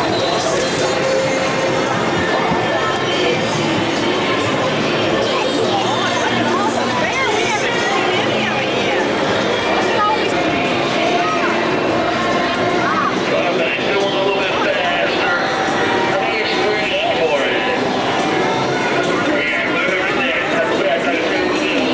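A crowd murmurs and chatters in the distance below.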